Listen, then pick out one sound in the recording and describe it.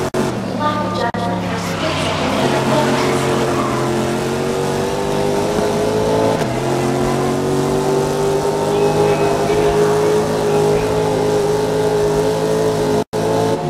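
A race car engine roars at high revs, shifting gears as it accelerates.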